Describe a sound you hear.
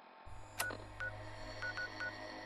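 A handheld electronic device gives short beeps.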